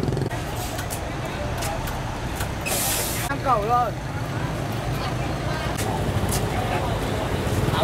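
A crowd of men talk and murmur nearby, outdoors.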